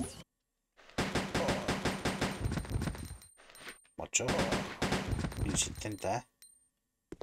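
A handgun fires repeated shots.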